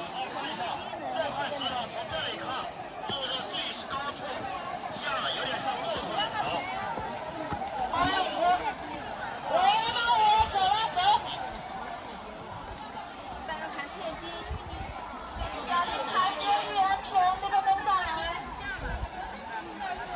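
A crowd of people chatter outdoors.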